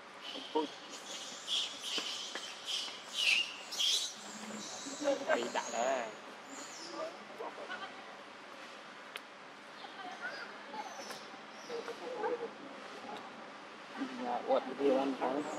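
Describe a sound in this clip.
A young monkey squeaks and chatters nearby.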